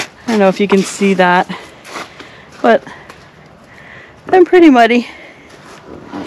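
Footsteps crunch on dry leaves and crusted snow.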